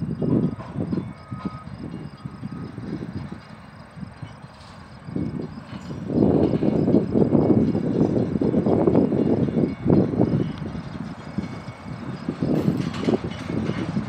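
A freight train rolls slowly along the track with a low rumble.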